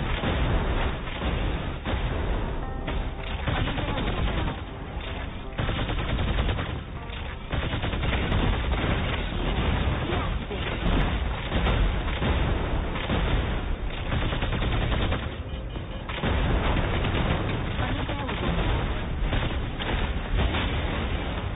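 A mech's thrusters roar as it boosts along.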